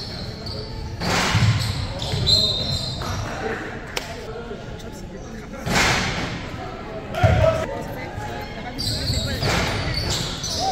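Spectators cheer in an echoing gym.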